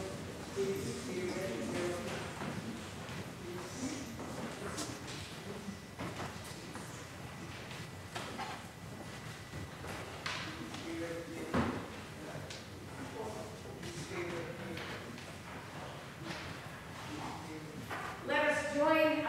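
A woman speaks calmly over a microphone in a large echoing hall.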